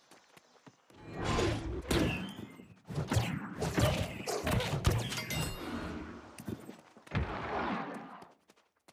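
A sword slashes and strikes repeatedly in a fight.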